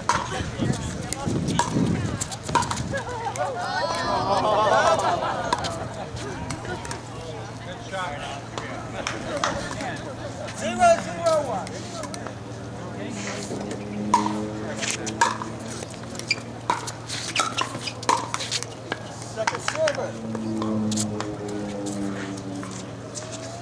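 Paddles pop sharply against a plastic ball in a quick rally.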